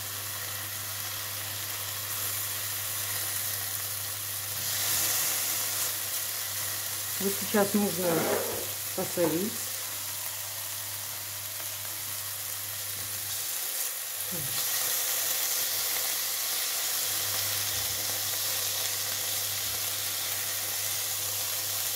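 A spatula scrapes and stirs food in a frying pan.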